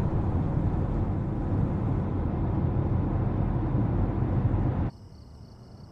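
A car engine rumbles low and steady, heard from inside the car.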